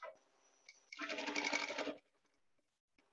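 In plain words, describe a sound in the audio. A sewing machine whirs briefly as it stitches.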